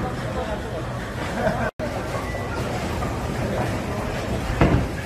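Bowling alley noise rumbles steadily in a large echoing hall.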